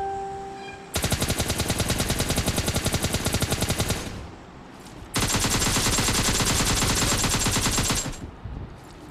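Automatic rifle fire rattles in rapid bursts.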